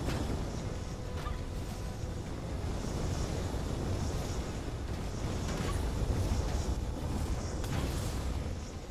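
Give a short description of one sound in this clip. Fire roars and crackles steadily.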